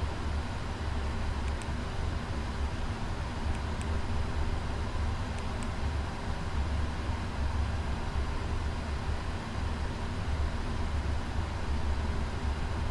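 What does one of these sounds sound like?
A steady low engine drone hums.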